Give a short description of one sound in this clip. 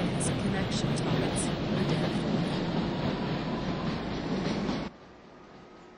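A subway train rumbles loudly through a tunnel, then cuts off abruptly.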